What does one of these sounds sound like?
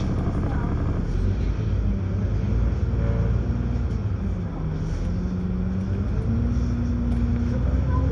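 A bus engine revs and rises in pitch as the bus pulls away.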